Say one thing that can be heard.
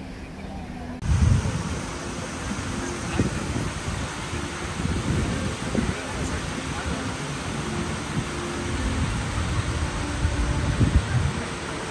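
Wind blusters outdoors.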